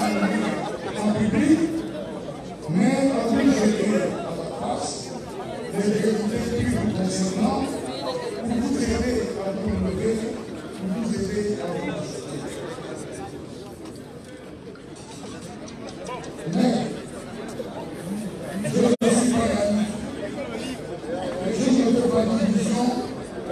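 A man speaks into a microphone, heard through loudspeakers outdoors, delivering a speech with emphasis.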